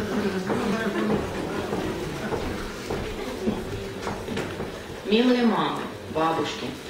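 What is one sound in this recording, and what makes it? A woman speaks into a microphone over loudspeakers in an echoing hall.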